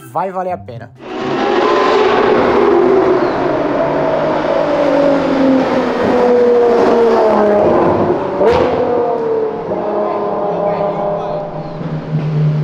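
A sports car engine roars loudly and revs up as the car drives past.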